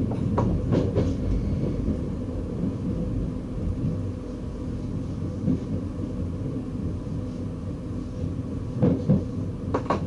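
Train wheels clack over rail joints and switches.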